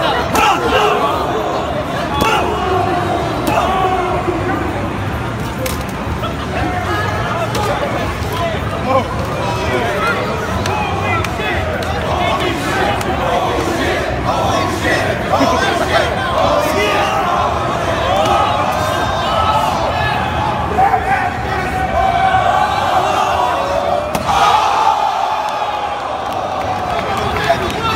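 A large crowd of men and women cheers and shouts nearby, in a large echoing hall.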